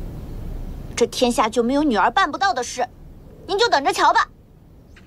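A young woman speaks firmly and close by.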